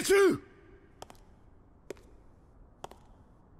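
Hard shoes step slowly on a stone floor.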